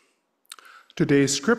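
A middle-aged man reads aloud calmly into a microphone.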